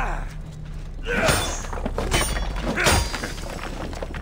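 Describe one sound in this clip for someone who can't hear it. Stone cracks and shatters into crumbling pieces.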